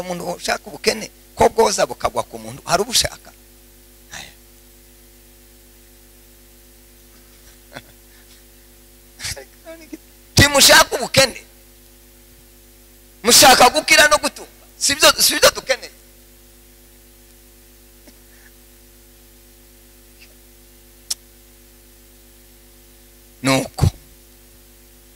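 A man speaks with animation through a microphone and loudspeakers, in bursts with long pauses.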